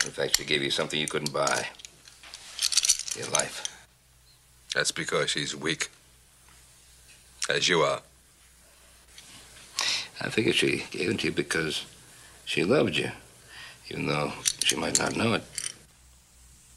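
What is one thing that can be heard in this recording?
A middle-aged man speaks calmly and firmly up close.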